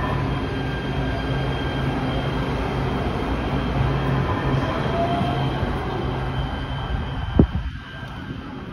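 A train pulls away along the track.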